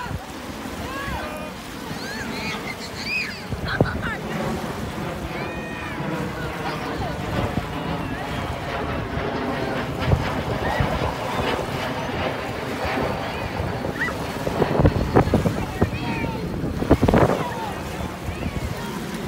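Small waves lap and splash steadily on a pebbly shore.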